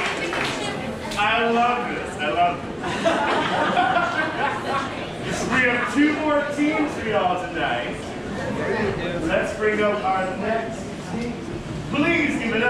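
A man speaks with animation through a microphone and loudspeakers.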